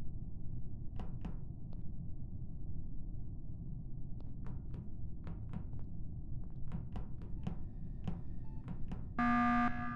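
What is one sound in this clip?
Quick light footsteps tap across a hard floor.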